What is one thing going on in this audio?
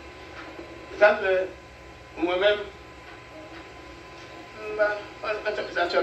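An elderly man speaks slowly and forcefully into a microphone, with pauses between phrases.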